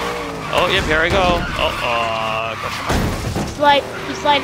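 A car crashes with a loud thud and scraping.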